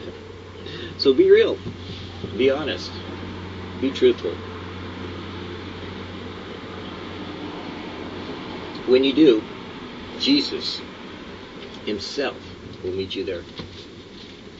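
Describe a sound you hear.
A middle-aged man speaks casually close by.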